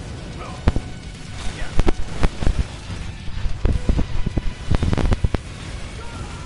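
Loud explosions boom and crash repeatedly.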